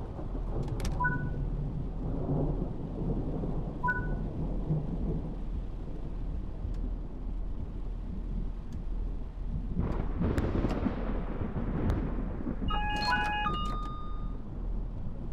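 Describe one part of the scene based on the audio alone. An electronic warning tone beeps several times.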